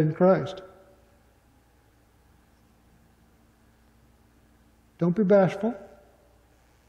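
A man speaks calmly into a microphone in a reverberant room, with long pauses.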